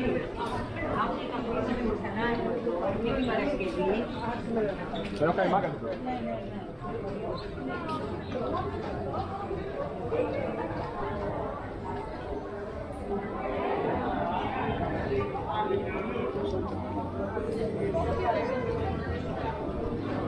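People chatter at a distance outdoors.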